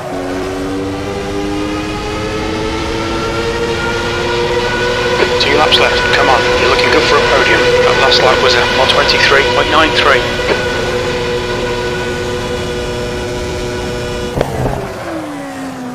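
A racing car engine whines at high revs, rising slowly and then holding steady before dropping sharply.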